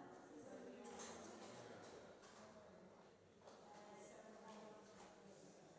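Several women chat quietly at a distance in a large echoing hall.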